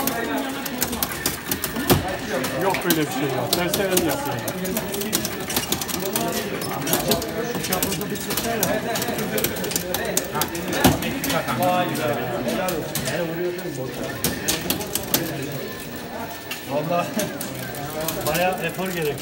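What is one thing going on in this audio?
Music of a fighting game plays from arcade speakers.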